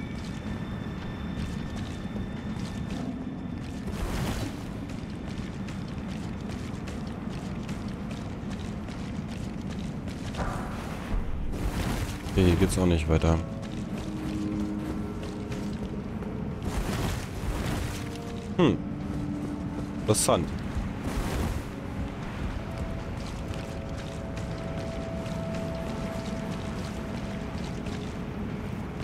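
Footsteps crunch over debris in an echoing tunnel.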